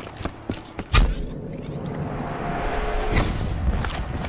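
A portal whooshes and roars as it is entered.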